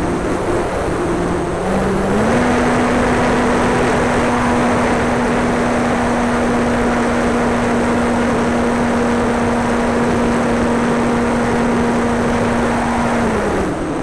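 A model plane's small engine whines steadily, rising in pitch and then dropping near the end.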